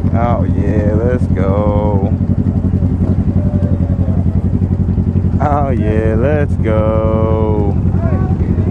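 Motorcycle engines rev loudly nearby, rising and falling in pitch.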